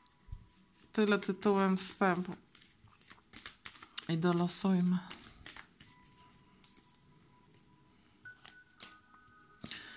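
Playing cards riffle and flap as a deck is shuffled by hand.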